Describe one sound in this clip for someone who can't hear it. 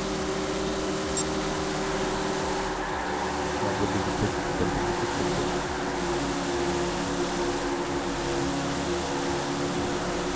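A V8 stock car engine roars at full throttle.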